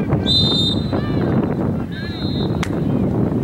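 A referee blows short, sharp whistle blasts.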